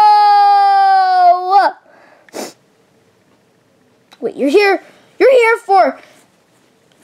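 A plush toy bear gives out a squeaky electronic voice.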